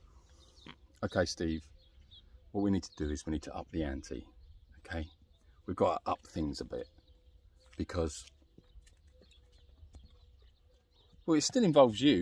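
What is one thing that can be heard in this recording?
A middle-aged man talks calmly, close to the microphone.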